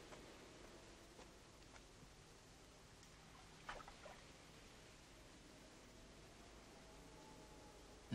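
Water splashes softly as a woman wades beside a boat.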